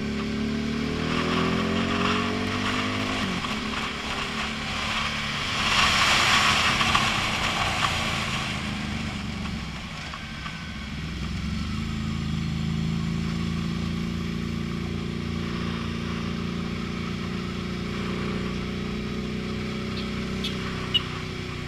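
Wind rushes loudly past the rider's helmet.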